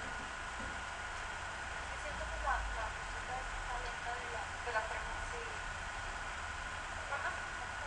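A young woman speaks casually through a webcam microphone.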